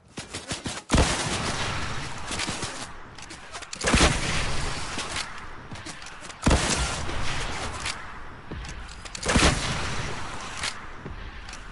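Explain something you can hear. Rockets explode with heavy booms, again and again.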